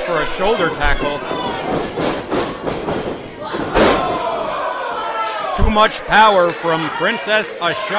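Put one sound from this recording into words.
A crowd of spectators nearby cheers and shouts in an echoing hall.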